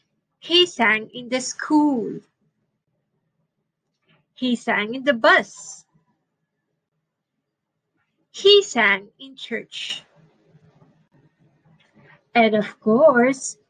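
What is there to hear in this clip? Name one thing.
A woman reads aloud calmly and expressively into a microphone.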